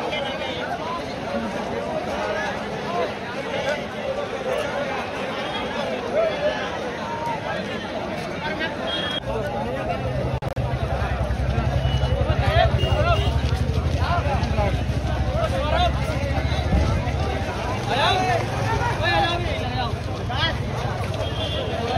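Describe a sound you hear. A large crowd of young men chatters outdoors, many voices overlapping.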